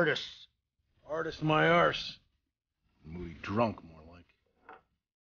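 An older man speaks dryly from nearby.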